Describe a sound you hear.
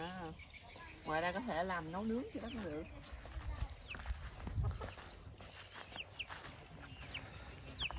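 A woman's footsteps crunch on dry grass.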